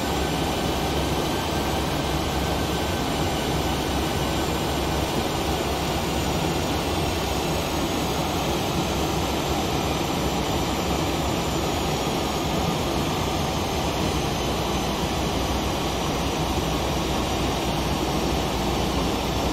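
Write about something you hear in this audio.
Jet engines roar steadily.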